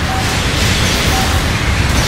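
Metal clangs and sparks crackle in a close impact.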